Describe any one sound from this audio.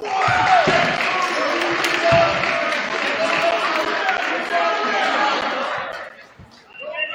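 A crowd cheers and chatters loudly in an echoing gym.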